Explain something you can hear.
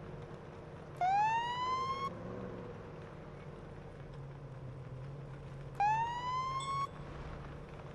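A police siren gives short rising whoops.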